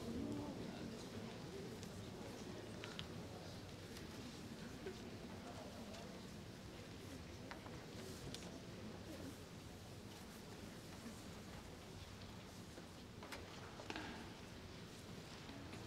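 A large audience murmurs quietly in a big echoing hall.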